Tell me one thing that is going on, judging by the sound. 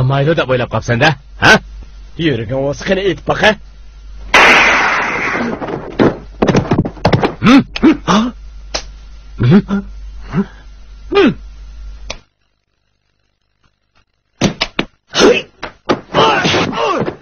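Gunshots ring out sharply, several times.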